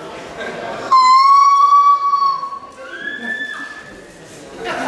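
A young woman sings a high, drawn-out note.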